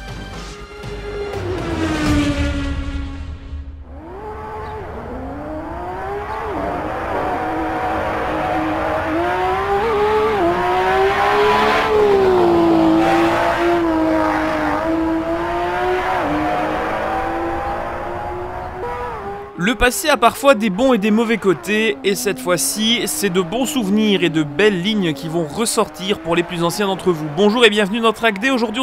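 A racing car engine roars and revs up and down through its gears.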